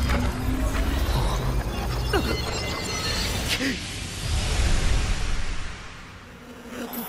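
A glowing mass bursts apart with a loud, roaring rush that swells and then fades.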